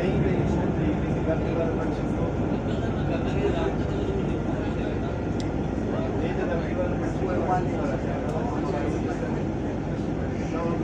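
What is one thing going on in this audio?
Traffic rumbles steadily past on a busy road nearby.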